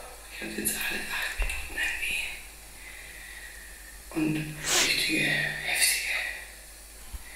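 A woman talks with animation, heard through a small speaker.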